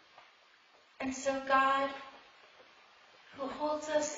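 A woman speaks slowly through a microphone in an echoing hall.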